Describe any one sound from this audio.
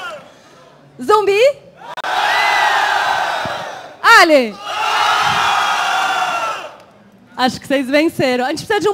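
A woman shouts excitedly through a loudspeaker microphone between the cheers.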